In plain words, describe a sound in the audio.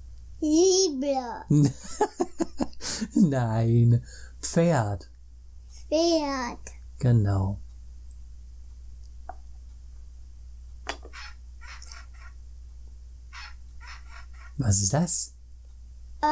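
A man speaks playfully and laughs close by.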